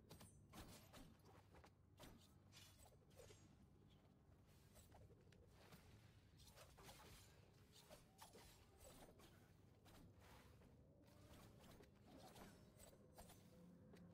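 Blades swish and clang in quick sword strikes.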